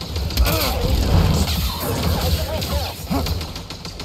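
Fire bursts and crackles from a beast's mouth.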